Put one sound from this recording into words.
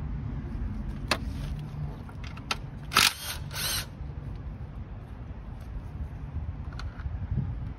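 A cordless tool clicks and knocks against metal parts.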